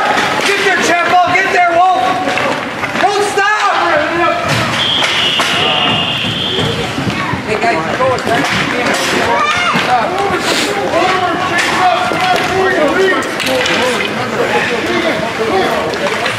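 Skates scrape and hiss on the ice.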